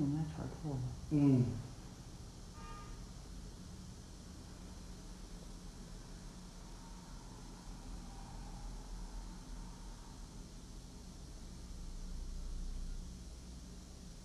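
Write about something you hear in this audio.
An electric trimmer buzzes steadily close by.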